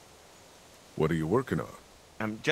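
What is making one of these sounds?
A man asks a question with mild concern.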